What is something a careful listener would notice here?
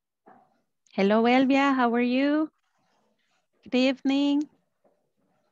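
A woman speaks briefly into a headset microphone, heard through an online call.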